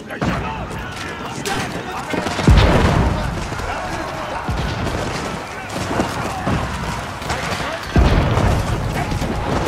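Swords clash in a loud battle.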